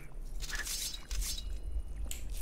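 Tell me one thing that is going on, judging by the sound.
A block crunches as it breaks apart.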